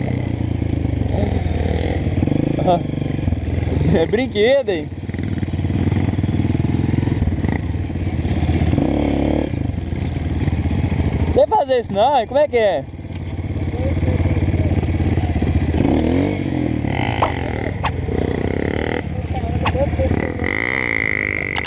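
A motorbike engine runs close by with a steady rumble.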